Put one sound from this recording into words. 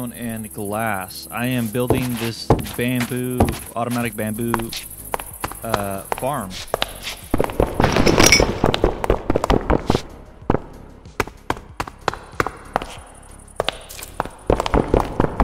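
Stone blocks crack and break in quick succession.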